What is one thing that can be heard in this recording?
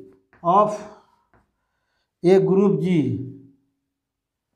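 A man speaks calmly in a slow, lecturing voice.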